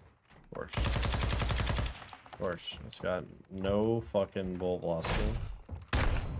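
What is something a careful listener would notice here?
Gunfire bursts loudly from a game.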